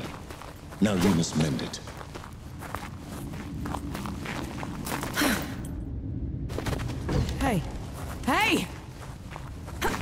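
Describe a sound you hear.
Footsteps patter quickly on a gravelly floor.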